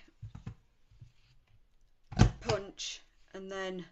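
A paper punch clicks shut through card.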